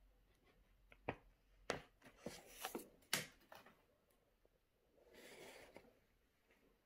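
Paper rustles and crinkles as a sheet is picked up and handled.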